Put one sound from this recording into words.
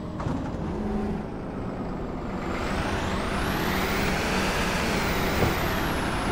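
A heavy truck engine rumbles steadily and its pitch rises and falls.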